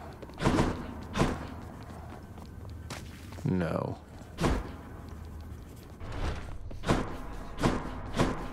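Fiery dashes whoosh in short bursts.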